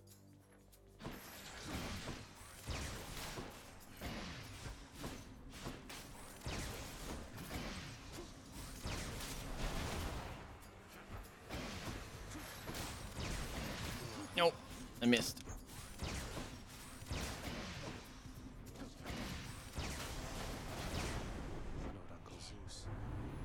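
Fighting sounds and blasts ring out.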